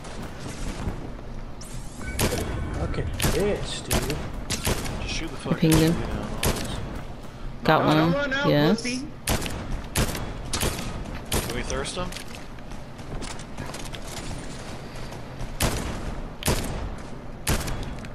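A rifle fires single sharp shots with pauses between them.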